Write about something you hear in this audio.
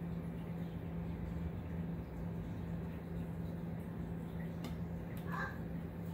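Oil trickles from a bottle into a bowl.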